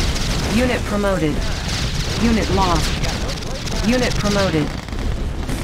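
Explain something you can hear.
Explosions rumble and crackle.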